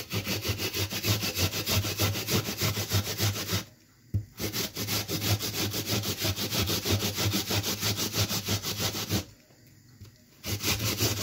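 A vegetable is grated against a metal grater in quick, rhythmic scraping strokes, pausing twice.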